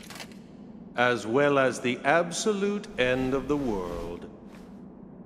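A man speaks slowly in a deep, dramatic voice.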